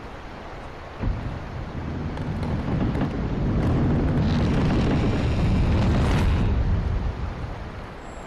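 Heavy wooden doors grind open with a deep, loud rumble.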